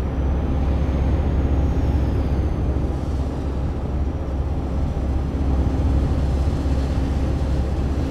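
A truck engine drones steadily while driving on a highway.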